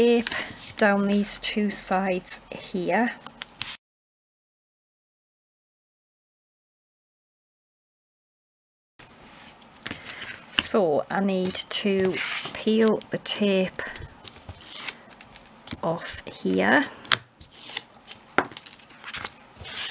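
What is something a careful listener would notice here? Hands rustle and smooth paper onto card.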